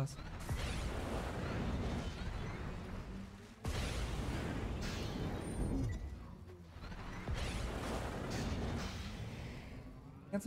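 A spacecraft engine roars and whooshes as a game vehicle flies along.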